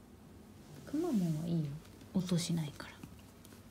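A woman speaks in a high, playful voice close by.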